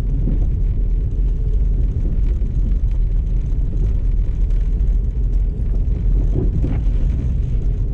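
A car engine rumbles steadily as the car drives along.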